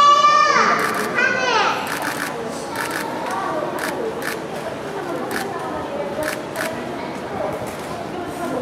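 A panda crunches and chews bamboo loudly up close.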